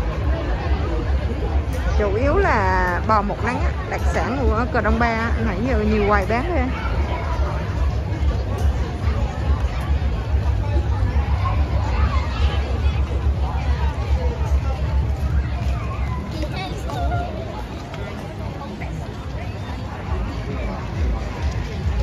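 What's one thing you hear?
A crowd of people chatters all around.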